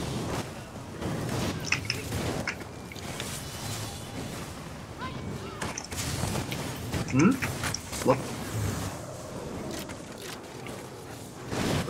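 Magic spells crackle and burst in quick, sharp blasts.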